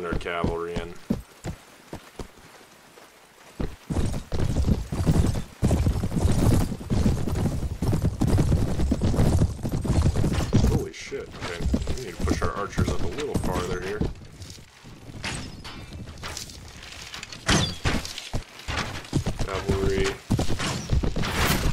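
A large troop of armoured soldiers marches, gear clanking.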